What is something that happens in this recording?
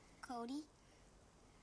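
A young girl speaks briefly and softly up close.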